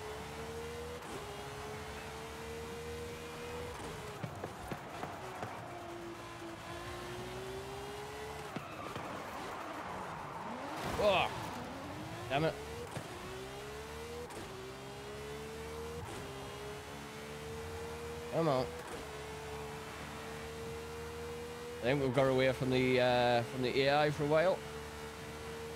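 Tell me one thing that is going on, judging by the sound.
A high-revving sports car engine roars, rising in pitch and dropping with each gear change.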